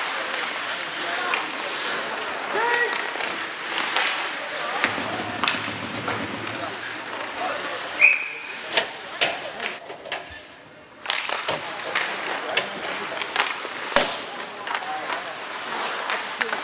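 Children shout and call out across the rink.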